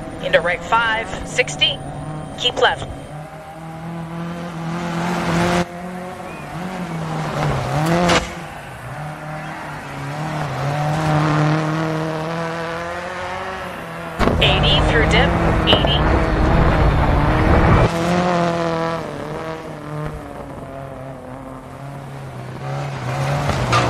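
A rally car engine roars and revs up and down.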